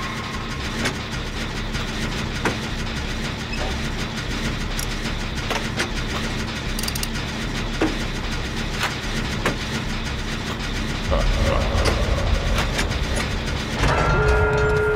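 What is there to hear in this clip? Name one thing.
A machine rattles and clanks as it is worked on.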